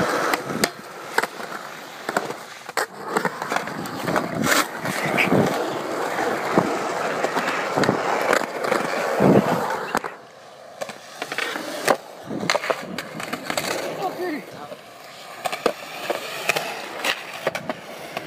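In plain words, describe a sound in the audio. A skateboard clacks and slaps down on concrete.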